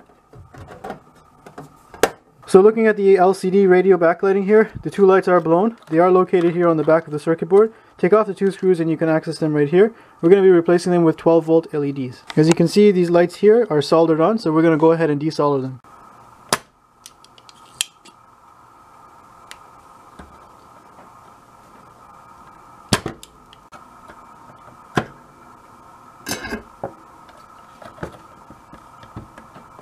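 Plastic parts click and knock as they are handled.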